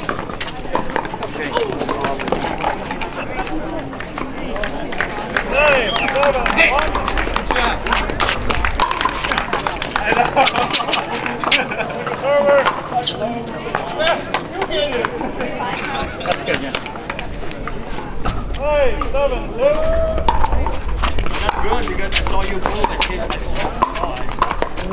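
Men and women talk and call out nearby on the courts.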